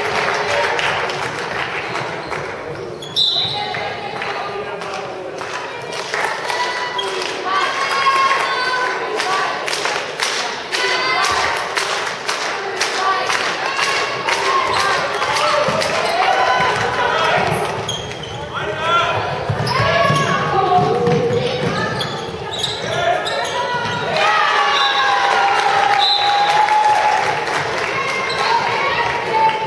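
Young women call out and shout to each other across the hall.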